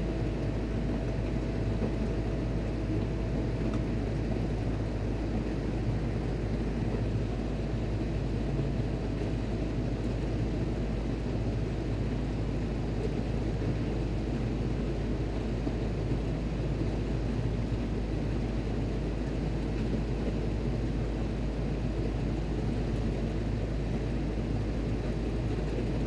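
A machine hums steadily nearby.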